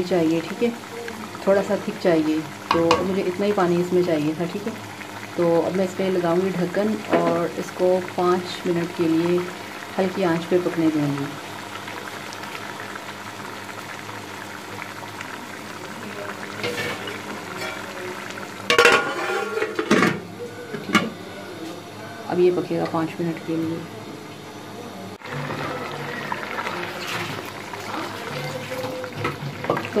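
A wooden spoon stirs a thick stew in a metal pot.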